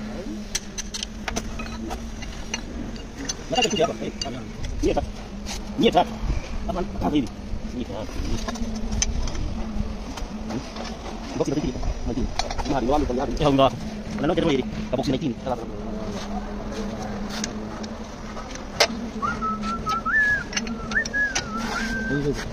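Metal tools clank and knock against an engine.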